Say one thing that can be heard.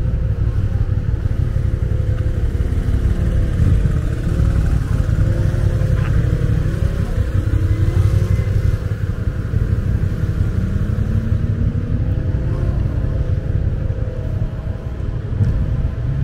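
Wind blows steadily and rumbles outdoors.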